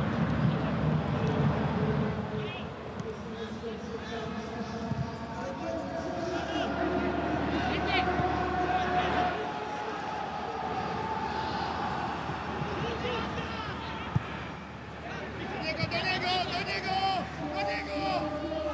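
A stadium crowd chants and cheers loudly in a large open space.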